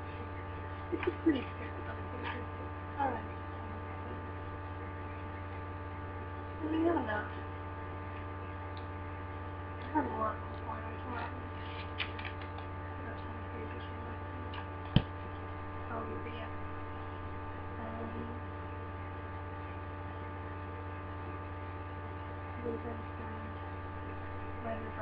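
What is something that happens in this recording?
A young woman speaks quietly and haltingly, close by.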